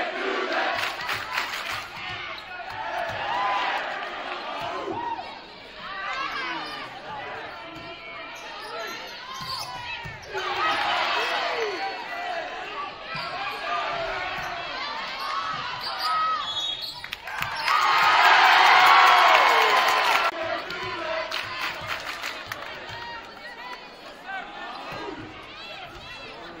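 Young women players shout and call out to each other in an echoing hall.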